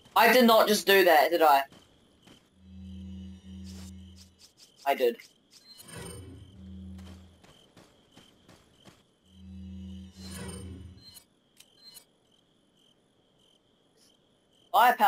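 A young man talks animatedly into a microphone.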